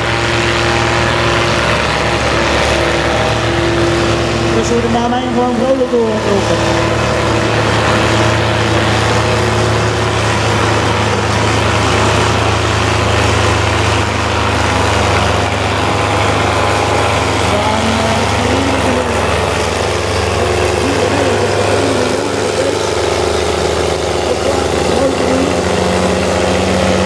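A tractor engine roars steadily at full load.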